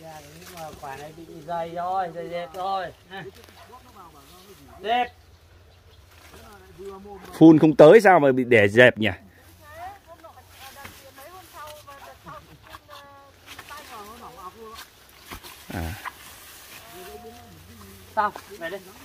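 A middle-aged man talks with animation outdoors, close by.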